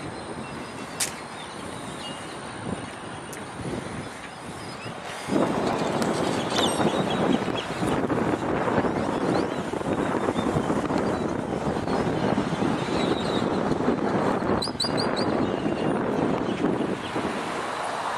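A car drives away along a road.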